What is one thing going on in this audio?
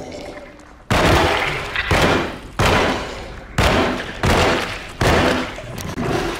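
Loud gunshots ring out one after another, echoing.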